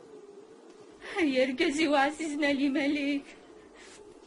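A woman cries out in a wailing voice nearby.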